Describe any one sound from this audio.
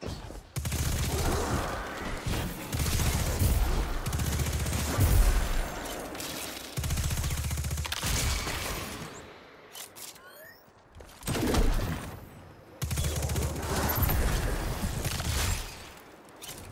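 Gunfire rattles and booms in rapid bursts.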